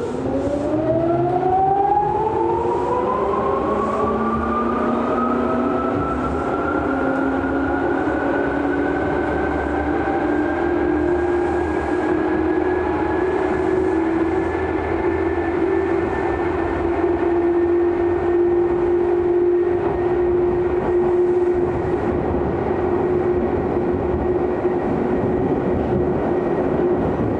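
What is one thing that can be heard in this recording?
Steel wheels rumble on the rails of an electric commuter train.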